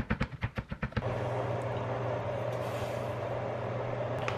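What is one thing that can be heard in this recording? Water hisses and sizzles in a hot pan.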